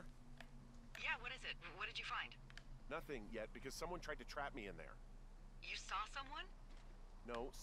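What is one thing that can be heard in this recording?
A woman answers with animation over a two-way radio.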